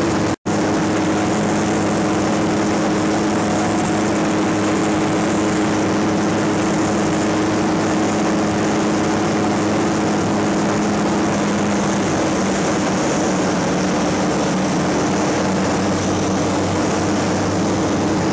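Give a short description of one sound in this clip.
Wind rushes loudly past the plane.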